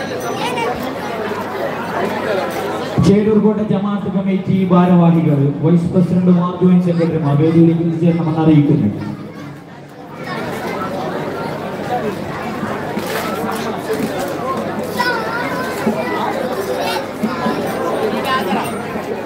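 A crowd of men murmurs and chatters nearby.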